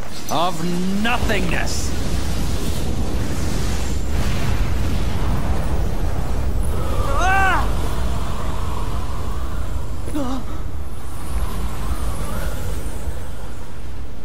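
A low rumbling whoosh swells and swirls.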